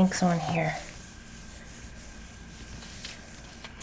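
Hands rub softly over a sheet of paper.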